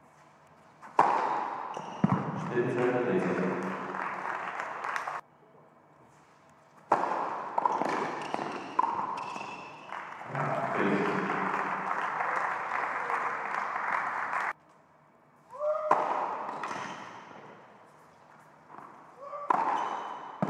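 A tennis ball is struck hard with a racket and bounces on the court.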